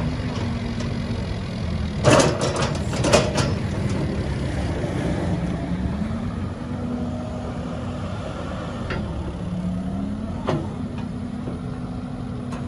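A diesel engine of an excavator rumbles steadily nearby, its pitch rising and falling.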